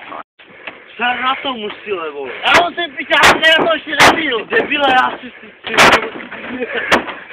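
A man stomps and jumps on a car's metal roof with loud dull bangs.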